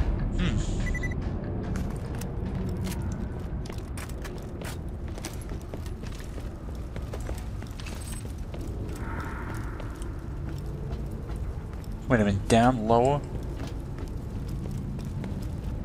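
Footsteps clang on metal grating.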